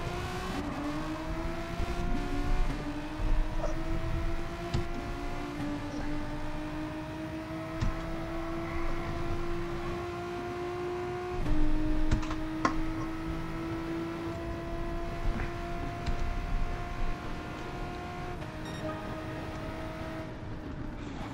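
A racing car engine revs high, rising in pitch through each gear and dropping at each shift.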